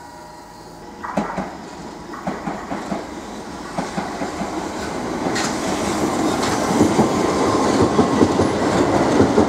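A train's wheels clatter rhythmically over rail joints close by.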